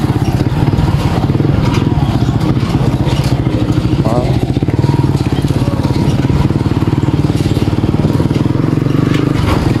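A motorcycle engine putters steadily close by.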